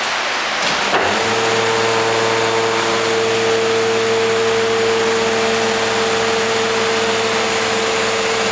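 A hydraulic press starts up and hums steadily as it closes.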